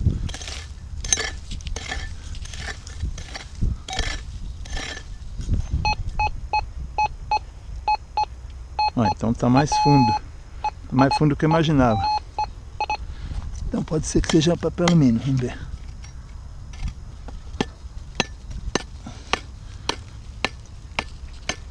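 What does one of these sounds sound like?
A hand trowel digs and scrapes into dry soil.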